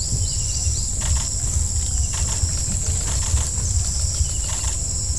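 Leaves and branches rustle as elephants push through bushes.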